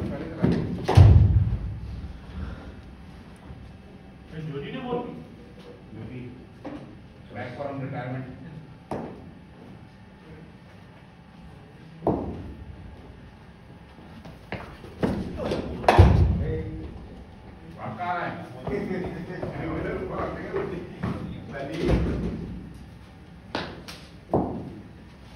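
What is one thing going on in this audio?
A cricket bat sharply cracks against a ball, echoing in a large hall.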